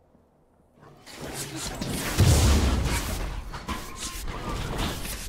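Game spell effects whoosh and crash as characters fight.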